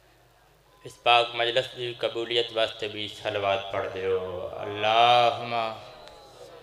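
A young man recites loudly and with feeling into a microphone, heard through loudspeakers.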